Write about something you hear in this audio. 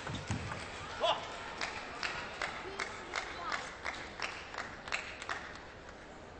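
A table tennis ball clicks quickly back and forth off paddles and a table.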